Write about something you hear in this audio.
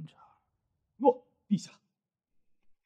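A second man answers in a low, tense voice, close by.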